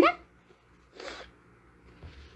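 A young woman sniffles into a tissue.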